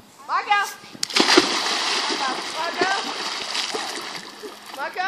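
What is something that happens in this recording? A child jumps into a pool with a loud splash.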